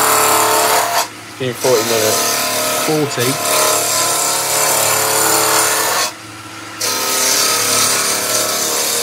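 A chisel scrapes harshly against spinning wood, pausing briefly twice.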